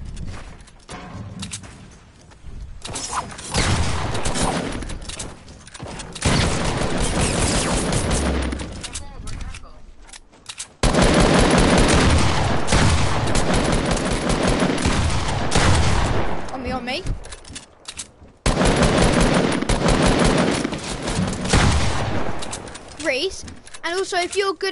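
Building pieces in a video game snap and clatter into place in quick bursts.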